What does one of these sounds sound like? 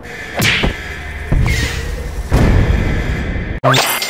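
A rocket launcher fires.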